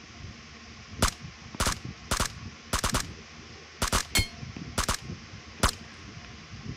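A rifle fires single sharp shots.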